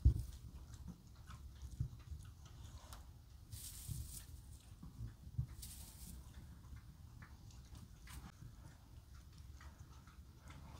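A rabbit rustles and nibbles in dry straw.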